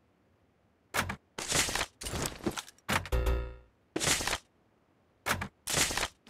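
A game's menu clicks and chimes.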